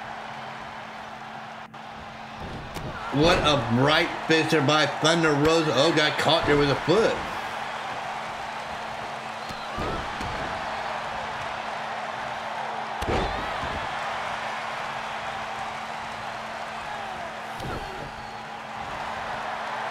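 A crowd cheers steadily.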